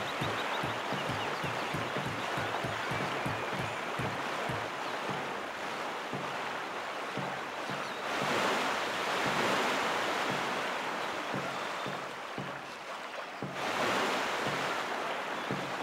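Water splashes steadily as paddles stroke through it.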